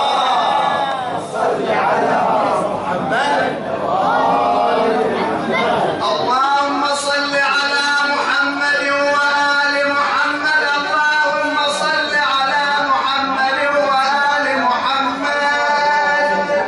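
A man chants loudly in long, drawn-out notes.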